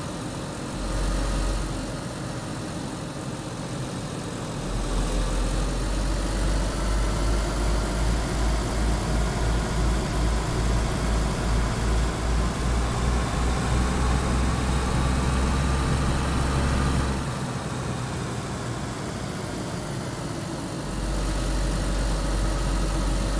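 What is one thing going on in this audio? A car engine hums and revs as a car drives along.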